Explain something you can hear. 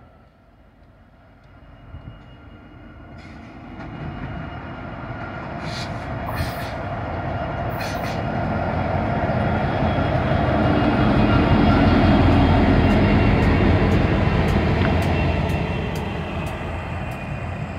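A locomotive engine rumbles as a train approaches and passes close by.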